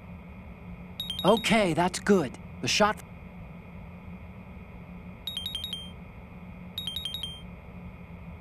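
Rapid electronic beeps chirp in short bursts.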